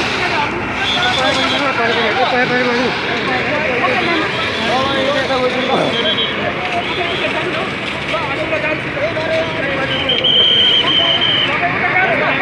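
A fire hose sprays water with a steady hiss.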